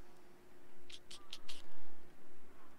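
Soft interface clicks sound several times in quick succession.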